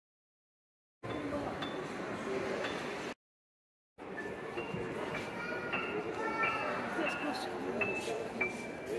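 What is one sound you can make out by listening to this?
A child plays single notes on a piano.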